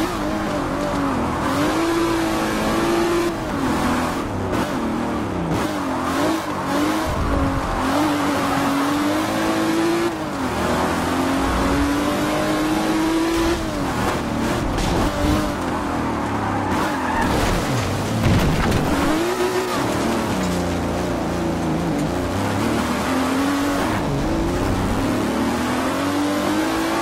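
A race car engine roars loudly, revving up and down through the gears.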